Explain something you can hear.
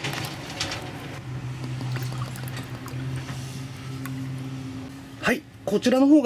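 Liquid pours into a glass, rising in pitch as it fills.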